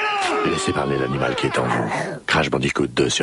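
A man shouts with animation.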